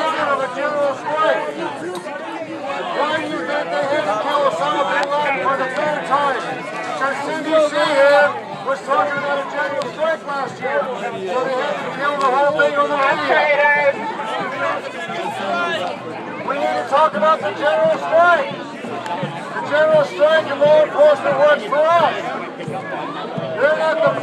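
A crowd of men and women chant and shout together outdoors.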